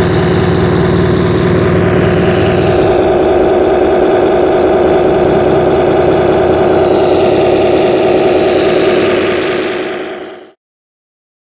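A model tank's engine hums and rumbles steadily.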